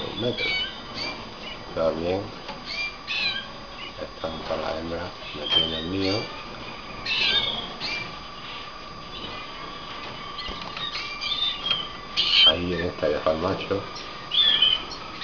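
Small caged birds chirp and tweet close by.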